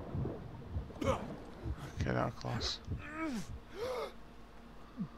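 A man grunts and groans with strain.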